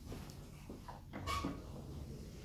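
A lift button clicks as it is pressed.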